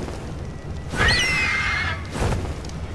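A large bird lets out a short screech.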